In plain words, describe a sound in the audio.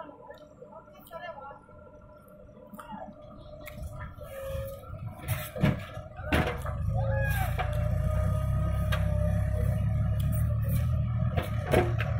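A backhoe's diesel engine rumbles steadily and grows louder.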